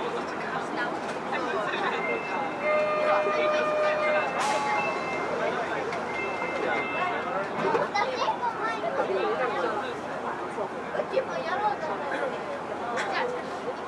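A subway train idles with a steady electric hum in an echoing station.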